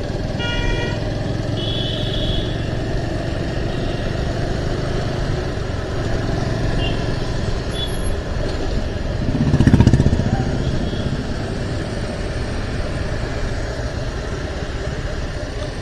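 Wind rushes past a moving motorbike.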